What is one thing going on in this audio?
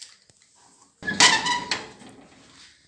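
A metal door latch clicks and rattles.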